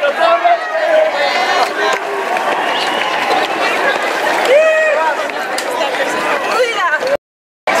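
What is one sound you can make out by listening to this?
A crowd of marching men and women chants and shouts loudly outdoors.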